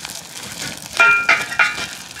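A stick knocks against a metal stove.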